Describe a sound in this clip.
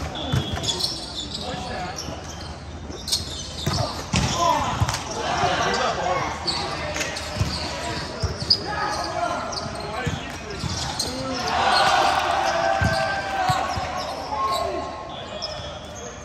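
Rubber soles squeak sharply on a hard court floor.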